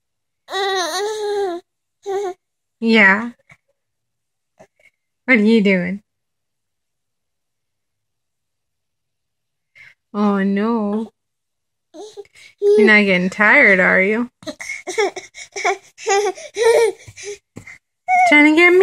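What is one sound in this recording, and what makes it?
A baby coos and squeals close by, in short bursts.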